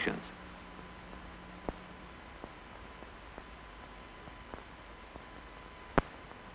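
A hot iron tip sizzles faintly as it melts through cloth.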